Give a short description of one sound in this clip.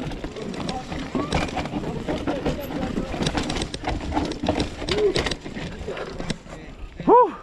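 A bicycle frame clatters over bumps.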